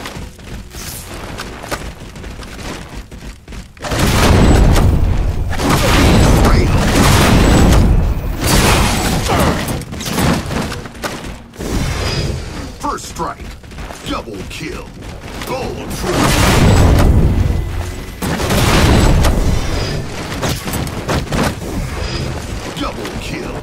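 Gunshots and weapon blasts crackle in a video game.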